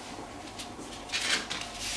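A card slides softly across a tabletop.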